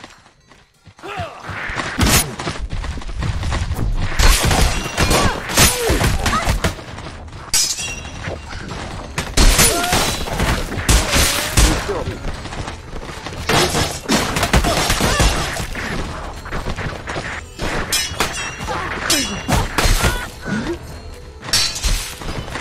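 Metal weapons clash and thud against wooden shields.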